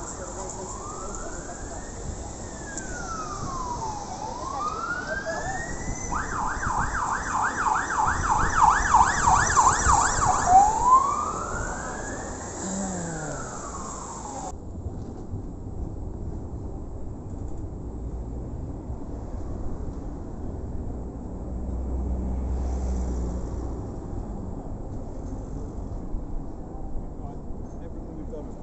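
Traffic rumbles steadily along a nearby street.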